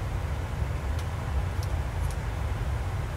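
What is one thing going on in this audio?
Switches click a few times on a cockpit panel.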